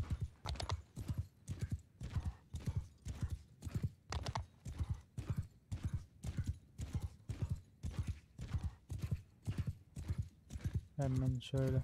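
Quick, heavy footsteps thud steadily over grass.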